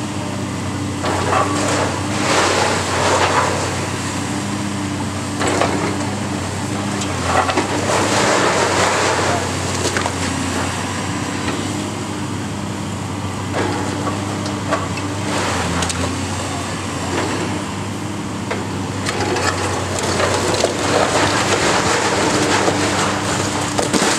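Rubble and bricks crash and tumble as a wall is torn down.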